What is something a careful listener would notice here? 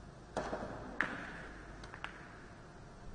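Billiard balls click against each other on the table.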